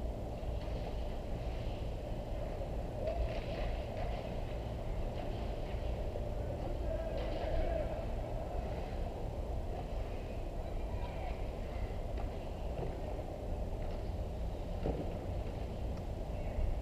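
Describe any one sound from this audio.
Hockey skates scrape on ice in the distance.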